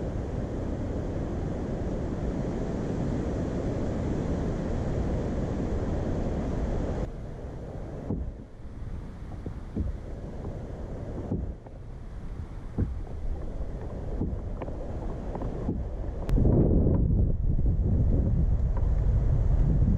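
Wind rumbles and buffets outdoors, growing stronger on open water.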